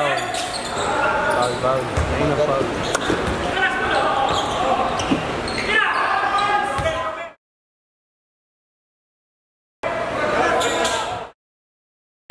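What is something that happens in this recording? Young men call out to each other in an echoing indoor court.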